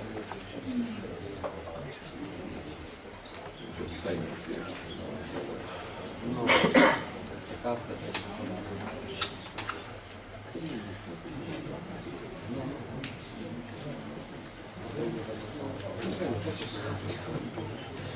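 A man speaks calmly into a microphone, heard through loudspeakers in a large echoing room.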